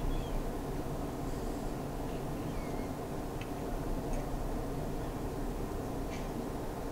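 Game sound effects play faintly from a phone speaker.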